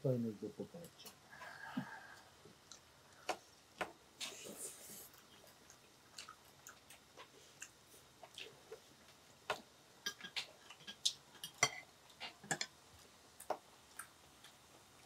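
Chopsticks and utensils clink and tap against dishes.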